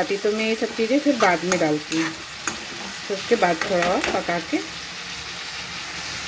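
A metal spatula scrapes against a pan.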